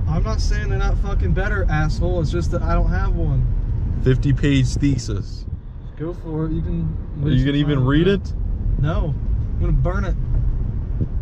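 A young man talks with animation inside a moving car.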